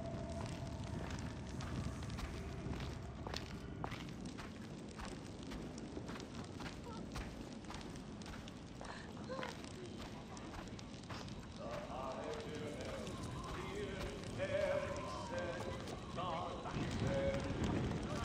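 Footsteps scuff across a stone floor.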